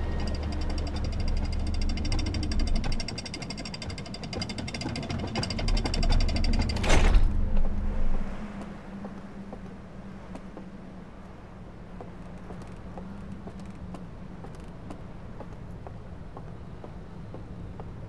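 A craft's engine rumbles low and then quiets down.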